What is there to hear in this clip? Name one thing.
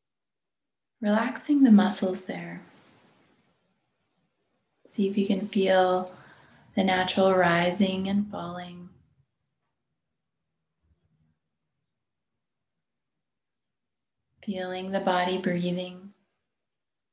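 A woman speaks calmly and softly, close to a microphone, with pauses.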